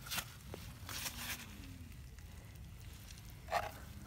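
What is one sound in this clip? A wooden board scrapes as it is lifted off soil.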